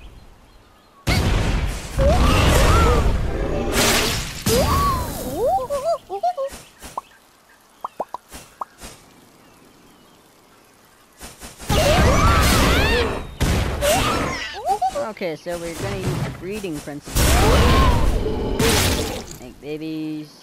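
Cartoon creatures squeak and chatter in high, cute voices.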